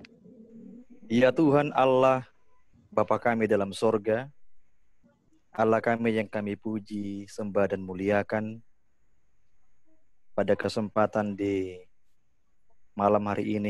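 A middle-aged man speaks with feeling over an online call, heard through a phone microphone.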